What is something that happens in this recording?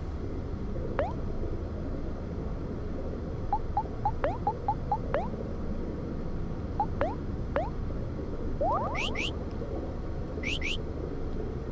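Short electronic menu blips tick in quick succession.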